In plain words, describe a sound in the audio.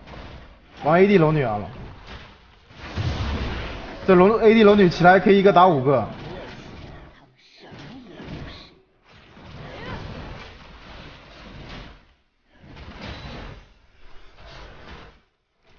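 Magical spell effects whoosh and crackle in a video game.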